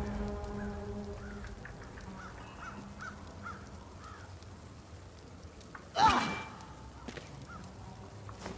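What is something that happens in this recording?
A torch fire crackles nearby.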